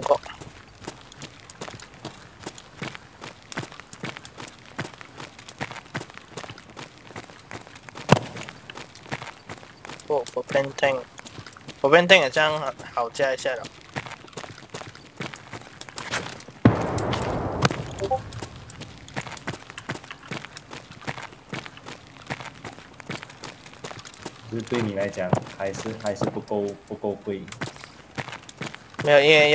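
Footsteps tap steadily on a hard floor indoors.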